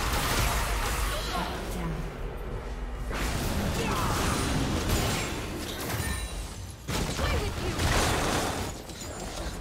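Magic blasts and weapon clashes of a fantasy battle crackle and boom.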